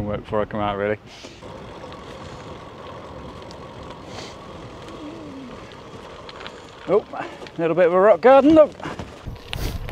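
Bicycle tyres roll and crunch over a gravel path.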